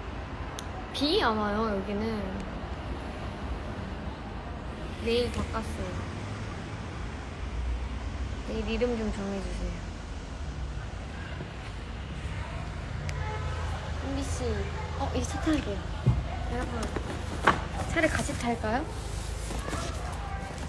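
A young woman speaks softly and playfully close to a phone microphone.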